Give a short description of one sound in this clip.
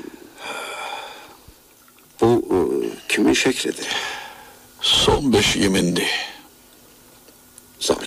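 An old radio crackles and whistles as it is tuned between stations.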